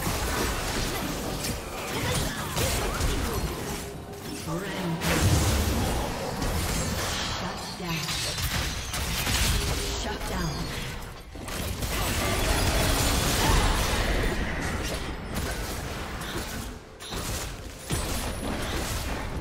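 Game spell effects blast and crackle during a fight.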